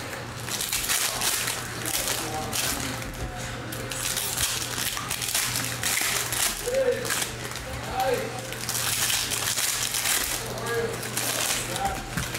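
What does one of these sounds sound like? Foil wrappers crinkle and rustle in hands close by.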